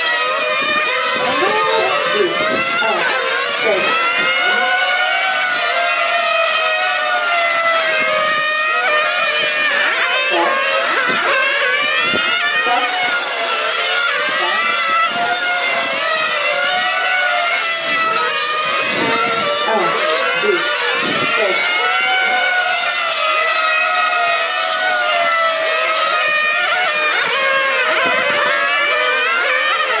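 Small model car engines whine loudly, their pitch rising and falling as they speed up and slow down.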